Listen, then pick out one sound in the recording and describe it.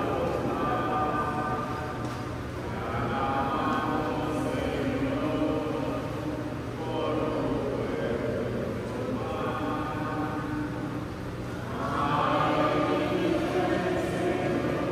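A man chants slowly in long held notes, echoing through a large hall.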